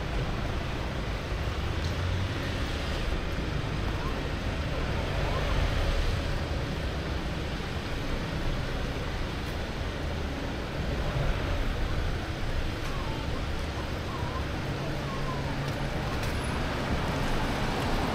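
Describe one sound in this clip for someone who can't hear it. Car traffic hums steadily along a wet street nearby.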